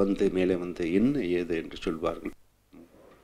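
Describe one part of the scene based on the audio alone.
A middle-aged man speaks calmly into a microphone.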